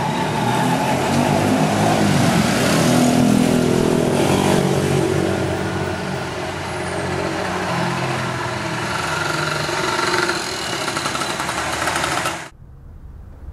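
Traffic rumbles past close by on a street.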